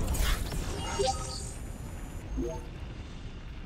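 A bright magical chime rings.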